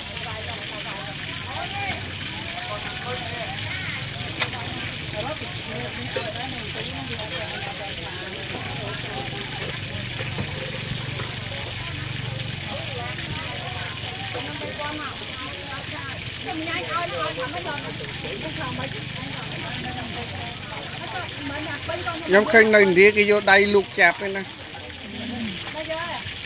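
Hot oil sizzles and crackles steadily in a pan.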